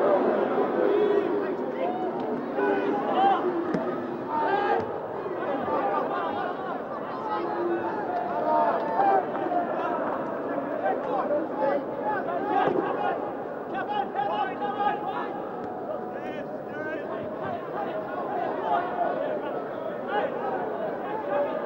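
A large crowd chants and cheers throughout a stadium.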